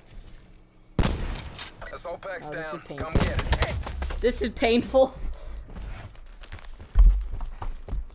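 Rifle shots ring out in loud bursts.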